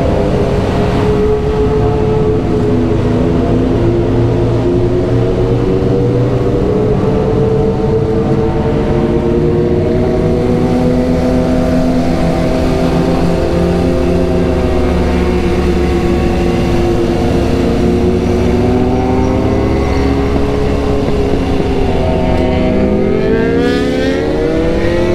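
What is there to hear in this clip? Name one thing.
Wind rumbles steadily past the rider.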